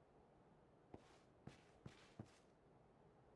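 Footsteps tap on a hard rooftop.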